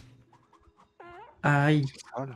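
A magical spell effect chimes briefly.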